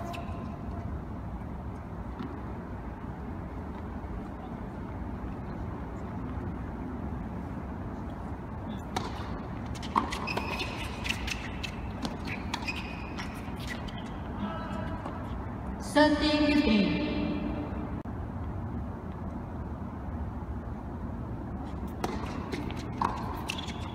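Tennis balls are struck with rackets in a large echoing hall.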